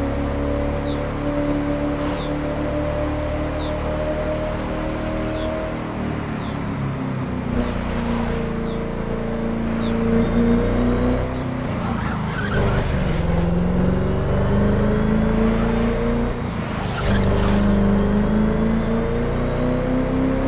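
Tyres hiss and rumble on the road.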